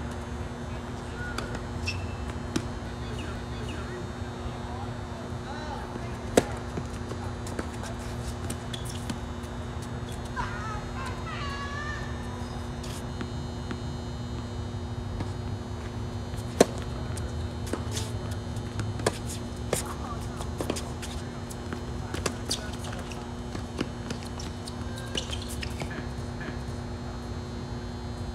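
A tennis ball bounces on a hard court.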